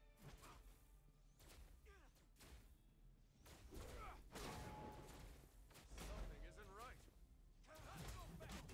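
Punches and energy blasts crash in quick bursts.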